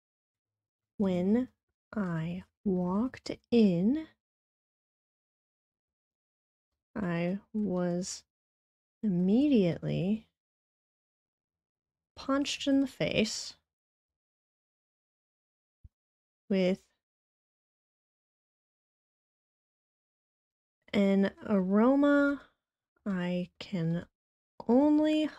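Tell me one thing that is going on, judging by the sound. A young woman speaks calmly into a microphone over an online call, pausing between phrases.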